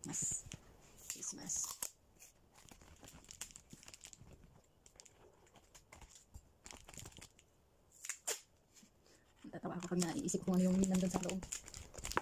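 A paper bag rustles and crinkles.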